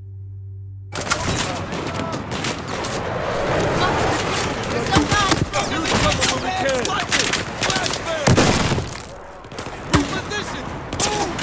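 Explosions boom loudly nearby.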